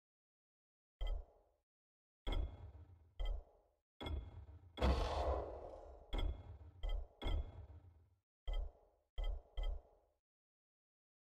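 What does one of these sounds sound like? Soft game menu clicks and thuds sound as options are selected.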